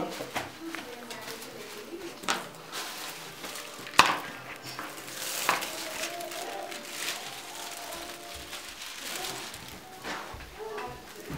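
A plastic sheet crinkles and rustles as it is handled.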